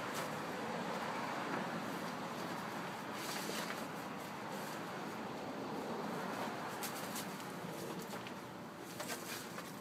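A plastic tarp rustles as it is lifted and folded back.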